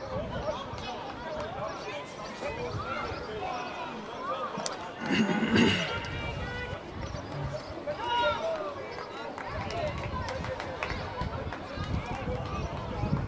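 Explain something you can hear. Young men shout and call out across an open field, heard from a distance.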